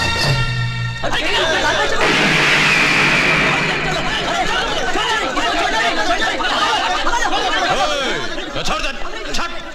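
A crowd of men shouts noisily.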